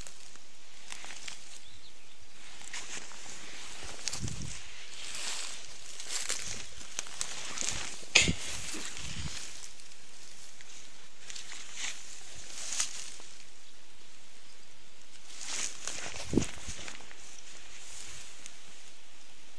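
Grass and leaves rustle close by.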